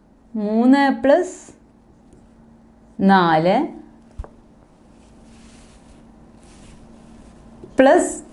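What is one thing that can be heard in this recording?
A woman speaks clearly in short phrases, like a teacher explaining.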